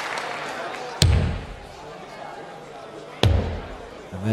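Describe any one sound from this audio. Darts thud sharply into a dartboard.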